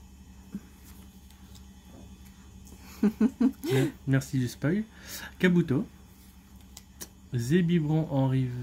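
Playing cards rustle and slide softly against each other.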